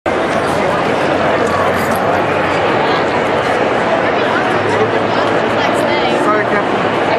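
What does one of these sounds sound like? A dense crowd chatters all around in a large echoing hall.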